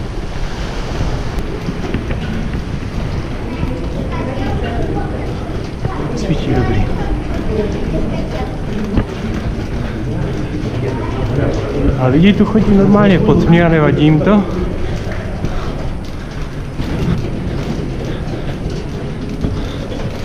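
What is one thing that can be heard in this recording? Footsteps scuff steadily on a hard path.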